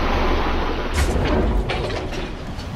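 A spaceship lands with a heavy thump.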